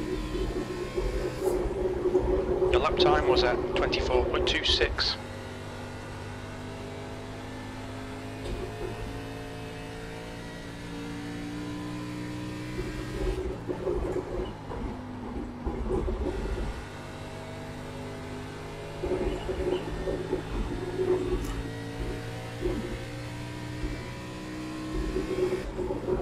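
A race car engine drones steadily, shifting pitch as the car speeds up and slows.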